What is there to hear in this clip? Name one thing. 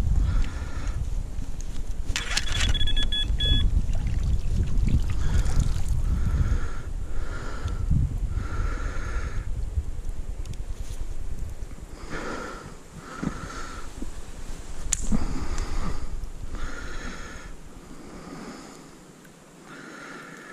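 A fishing net rustles as it is handled.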